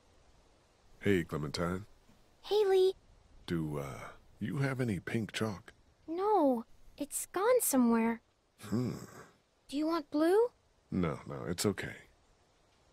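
A man speaks in a worried voice.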